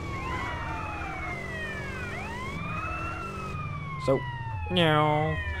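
A motorcycle engine hums and revs.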